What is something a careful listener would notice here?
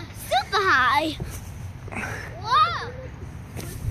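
A young child squeals and shouts excitedly up close.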